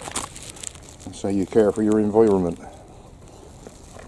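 A plastic bag crinkles in a hand.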